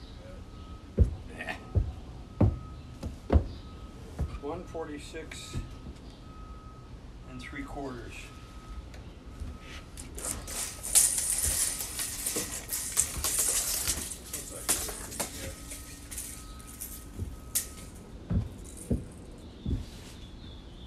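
Heavy footsteps thud on wooden deck boards.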